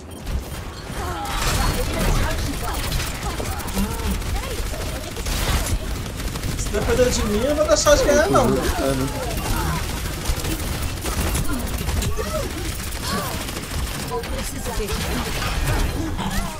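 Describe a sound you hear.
Gunfire and explosions from a video game crackle and boom.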